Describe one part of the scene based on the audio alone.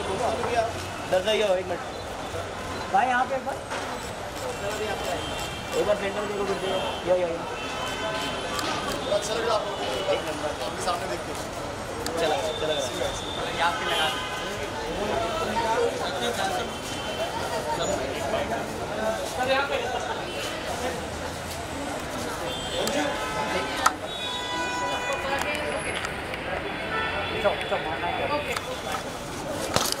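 A crowd of men talk and call out all around, outdoors.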